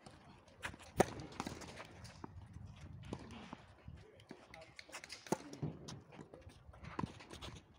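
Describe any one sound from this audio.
A tennis racket strikes a ball with sharp pops, outdoors.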